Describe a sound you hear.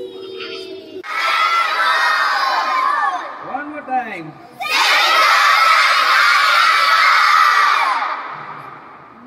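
A large group of children cheers and shouts loudly.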